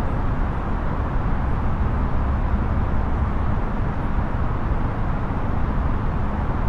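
A jet airliner's engines hum in a steady, low roar.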